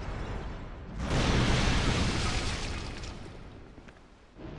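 A fireball whooshes past with a roar.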